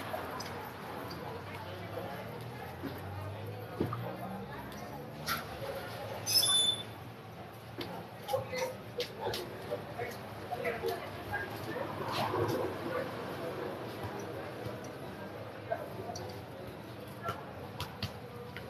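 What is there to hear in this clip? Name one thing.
A football thuds against a bare foot.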